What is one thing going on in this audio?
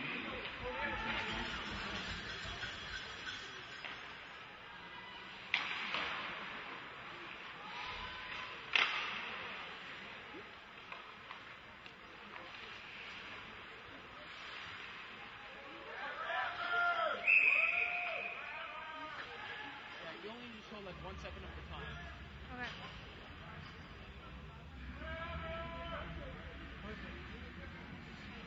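Spectators nearby chatter and call out.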